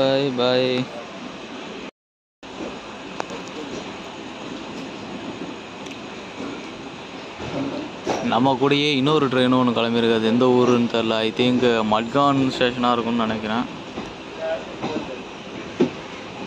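A train rolls along the tracks with a steady rumble and rattle.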